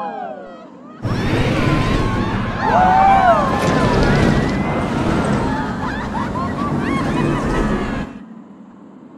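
A roller coaster rattles and roars along its track.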